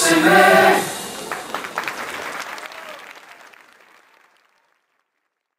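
A drummer strikes the drums and cymbals, and the ringing fades away.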